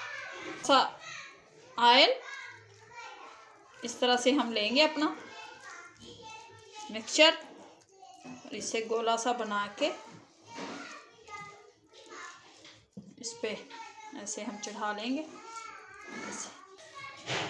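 Hands squish and knead a moist mixture in a bowl.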